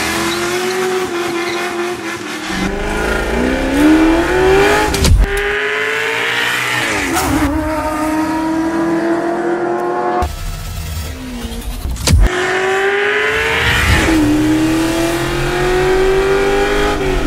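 A car engine roars loudly, revving up through the gears.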